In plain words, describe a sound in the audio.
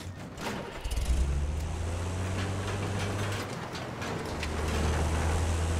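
A heavy vehicle engine rumbles close by.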